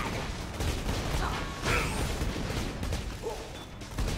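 Gunfire bursts rapidly.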